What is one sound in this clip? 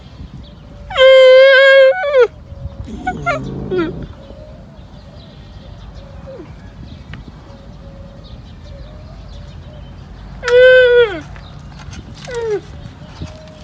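A baby camel bleats loudly and close by.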